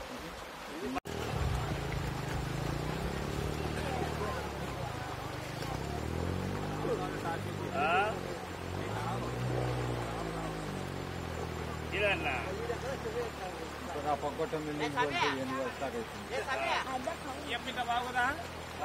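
A motorbike engine runs.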